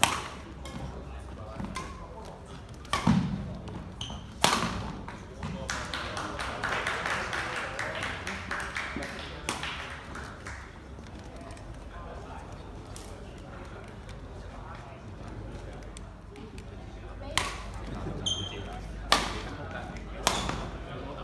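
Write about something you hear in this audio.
Rackets smack a shuttlecock in a large echoing hall.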